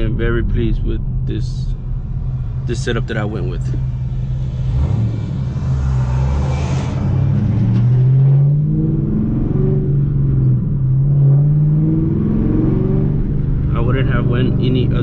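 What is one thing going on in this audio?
A car engine hums and revs up and down from inside the car.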